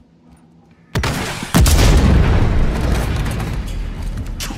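A loud blast booms and roars, then slowly fades.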